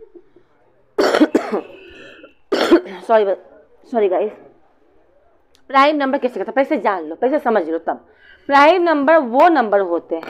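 A young woman speaks clearly into a close microphone, as if teaching.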